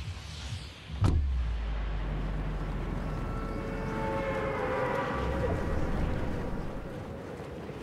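Wind rushes loudly past a falling skydiver.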